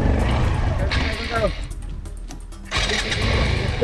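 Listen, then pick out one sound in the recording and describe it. A motorcycle engine stalls and falls quiet, then starts again.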